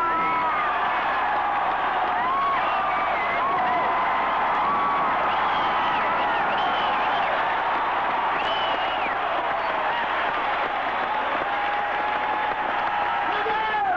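Fans in a crowd whistle shrilly, over and over.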